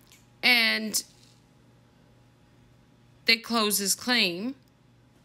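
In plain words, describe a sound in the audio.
A young woman speaks expressively and close up, in short bursts.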